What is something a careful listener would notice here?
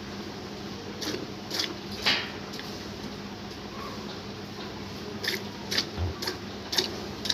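Milk squirts by hand into a metal pail in short spurts.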